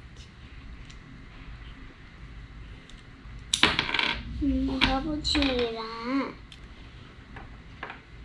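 Small plastic toy pieces click together.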